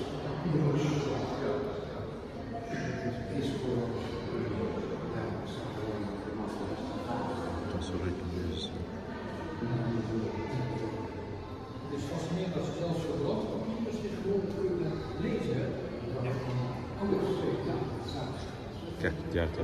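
Elderly men talk calmly nearby.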